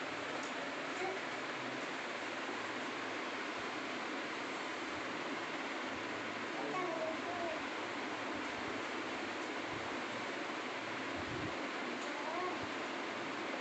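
A young girl speaks a few soft words close by.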